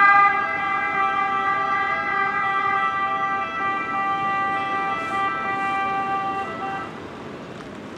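A siren sounds steadily from an emergency vehicle.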